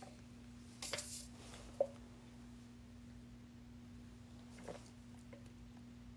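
A young woman gulps a drink from a can.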